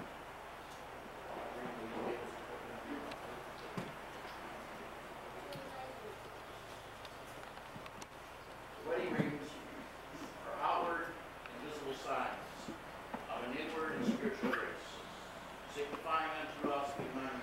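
A man speaks calmly and steadily, a little distant, in an echoing room.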